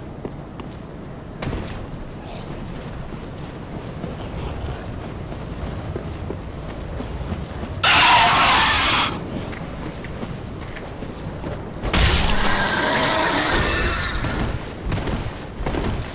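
Armoured footsteps crunch over snow and gravel.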